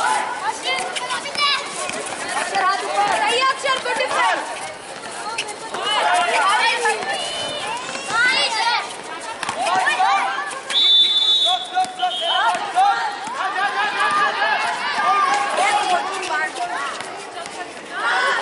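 Young men shout and call out to each other during a ball game outdoors.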